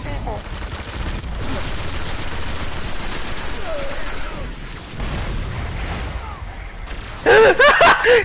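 Rapid gunfire and explosions crackle in a game.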